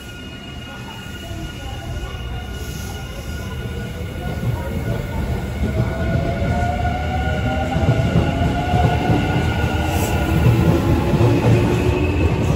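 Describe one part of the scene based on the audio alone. A train pulls into the station with a deep rumble and a rising electric whine.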